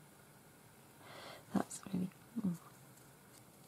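Stiff paper rustles softly as it is handled.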